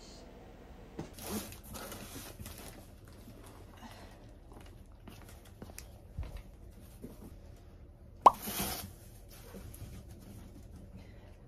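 A cardboard box rustles and thumps as it is lifted and set down.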